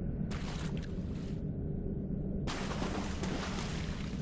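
Armored footsteps thud and clank as a figure runs.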